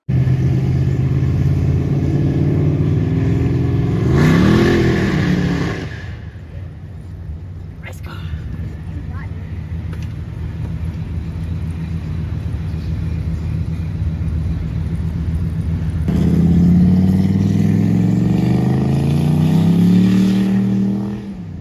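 A car engine rumbles close by, revving up and down.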